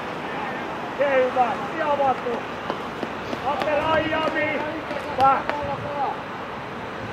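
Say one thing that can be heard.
Young men shout to each other across an open field outdoors, some way off.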